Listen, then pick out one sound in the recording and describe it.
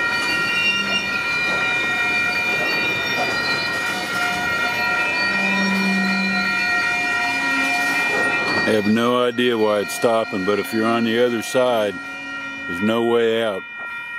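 Train wheels squeal with a steady high whine.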